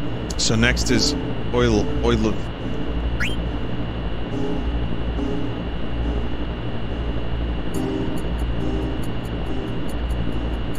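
Soft game music plays throughout.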